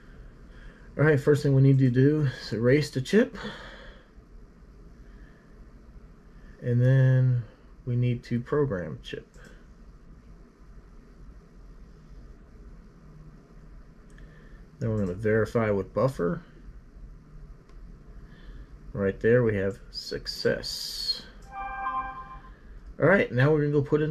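A man speaks calmly close to the microphone, in short bursts with pauses.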